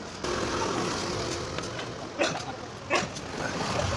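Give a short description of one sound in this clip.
A shovel scrapes against the ground.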